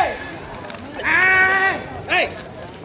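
A man shouts loudly outdoors.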